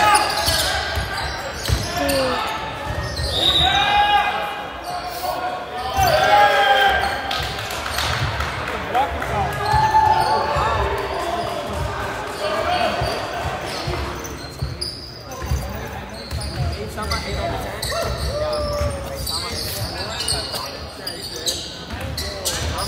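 Spectators nearby talk and shout.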